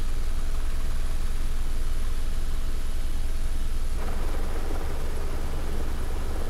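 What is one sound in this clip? A small propeller aircraft whirs steadily as it flies.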